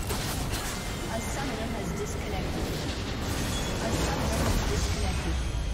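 Game battle effects clash and whoosh.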